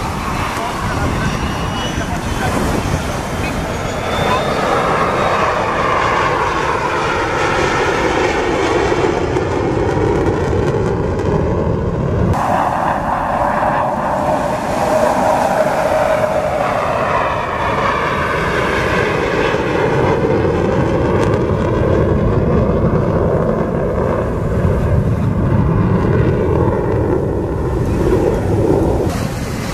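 A jet engine roars loudly overhead, its pitch sweeping up and down as the aircraft passes.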